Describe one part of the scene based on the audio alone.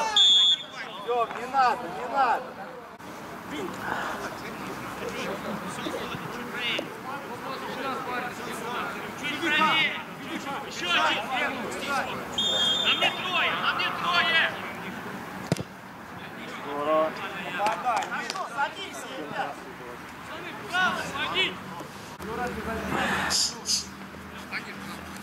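Men shout to each other across an open pitch outdoors.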